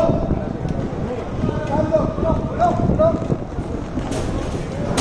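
Hockey sticks clack against the floor and a ball.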